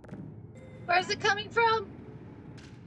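A young woman speaks with animation through a microphone.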